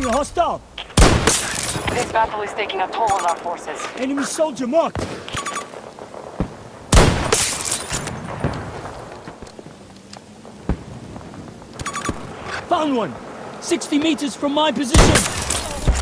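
A sniper rifle fires loud single shots that echo.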